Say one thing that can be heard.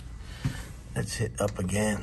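A finger clicks an elevator button.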